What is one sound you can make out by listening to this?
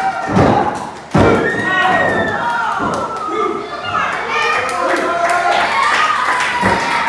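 A crowd of men and women shouts and cheers nearby in a large echoing room.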